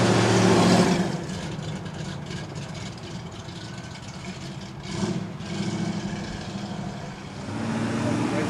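A car engine idles with a low, uneven burble close by.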